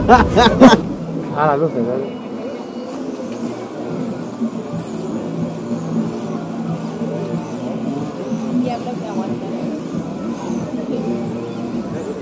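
Men chat nearby outdoors.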